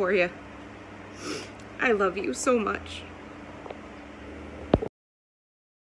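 A young woman sobs and sniffles close by.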